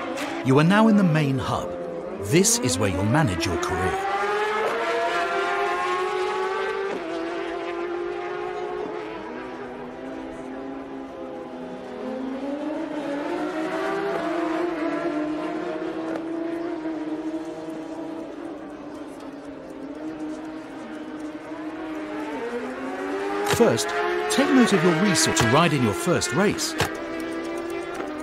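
Motorcycle engines roar and rev up and down.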